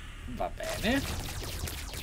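A man speaks briefly close to a microphone.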